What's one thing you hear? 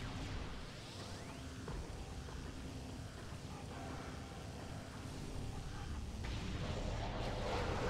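A game arm cannon fires blasts of energy.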